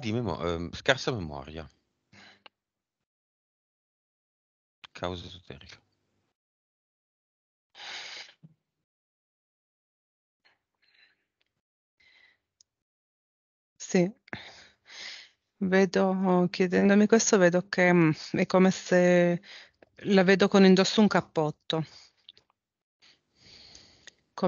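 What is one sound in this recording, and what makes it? A man speaks with animation into a close microphone, with pauses.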